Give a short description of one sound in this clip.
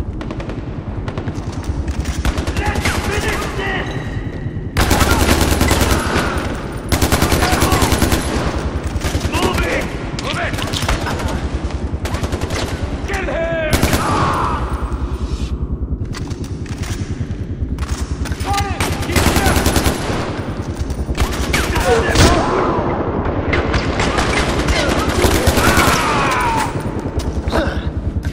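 An automatic rifle fires in rapid, loud bursts.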